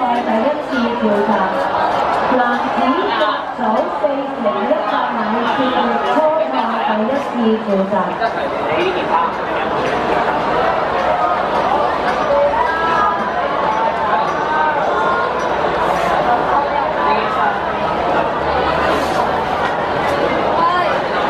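A crowd of young people chatter and call out nearby, outdoors.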